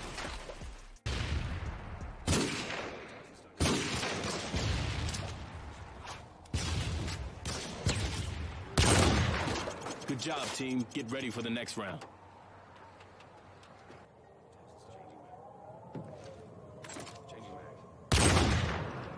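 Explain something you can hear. A rifle fires loud, booming shots with echoing tails.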